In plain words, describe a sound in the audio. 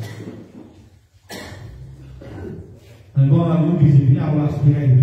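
A middle-aged man speaks with animation into a microphone through a loudspeaker.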